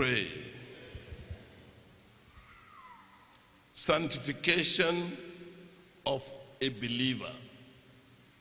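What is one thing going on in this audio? A middle-aged man speaks into a microphone over a loudspeaker, in an echoing hall.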